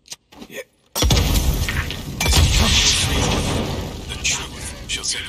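An explosion bursts with crackling sparks.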